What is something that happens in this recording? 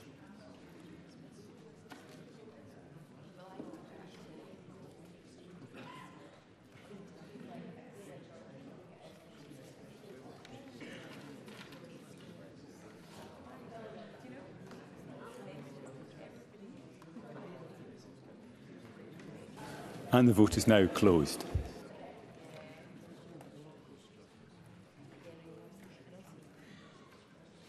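Several people murmur quietly in a large echoing hall.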